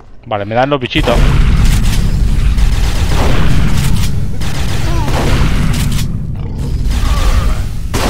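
A gun fires in rapid bursts with loud blasts.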